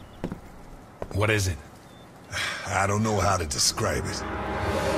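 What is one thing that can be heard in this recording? A second man answers calmly.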